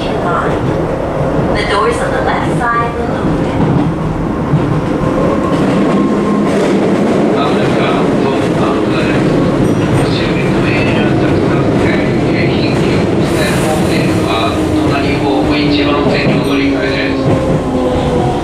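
A train rumbles and clatters along the tracks, heard from inside a carriage.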